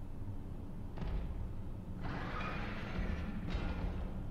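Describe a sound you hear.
A metal grate scrapes and rattles as it slides open.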